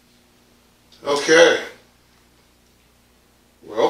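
A man preaches loudly with emphasis.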